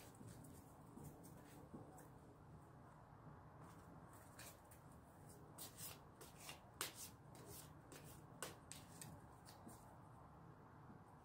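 Playing cards rustle and flick as hands shuffle them.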